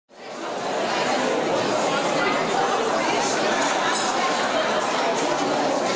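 A seated audience murmurs and chatters in a large hall.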